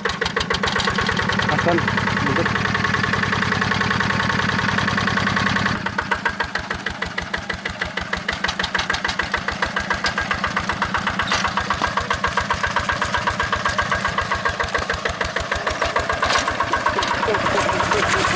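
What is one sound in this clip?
A small diesel engine chugs steadily and loudly close by.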